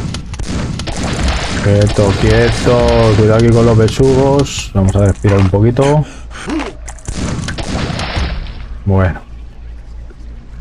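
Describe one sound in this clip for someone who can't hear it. Water churns and bubbles underwater.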